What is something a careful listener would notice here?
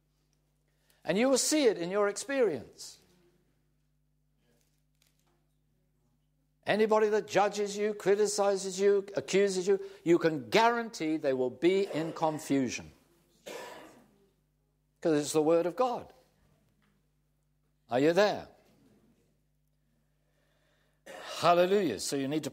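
An elderly man speaks calmly and clearly into a microphone, pausing between phrases.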